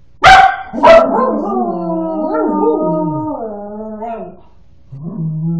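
A dog howls long and wavering.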